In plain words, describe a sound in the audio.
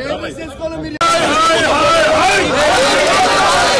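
A crowd of people chants loudly.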